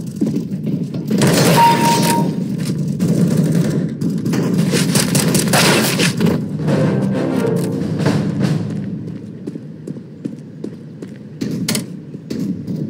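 A rifle fires sharp shots in quick bursts.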